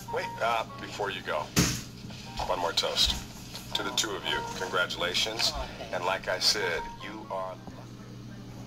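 A man proposes a toast through a television speaker, heard in a room.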